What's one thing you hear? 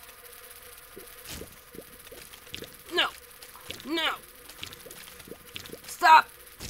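Small watery shots pop in quick bursts in a video game.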